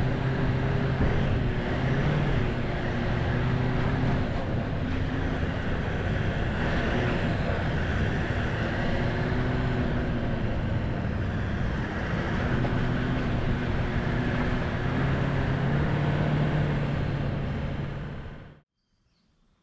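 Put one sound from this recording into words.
A turbo-diesel V8 ute engine drones from inside the cabin while driving over a rutted dirt track.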